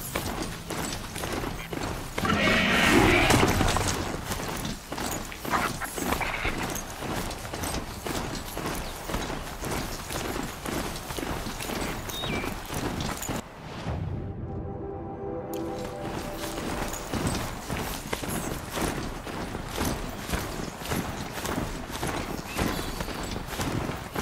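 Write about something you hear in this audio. Heavy mechanical footsteps crunch steadily through snow.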